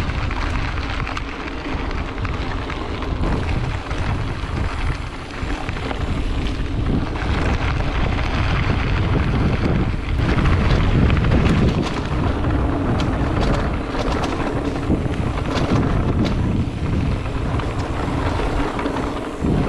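Bicycle tyres crunch and rattle over a gravel track.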